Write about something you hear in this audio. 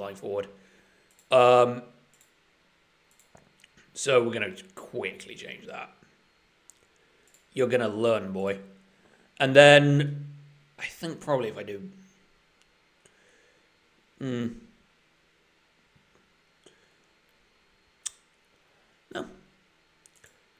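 A young man talks calmly into a close microphone, in short bursts with pauses.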